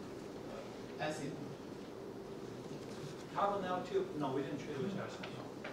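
A man speaks calmly into a microphone over loudspeakers in a large room.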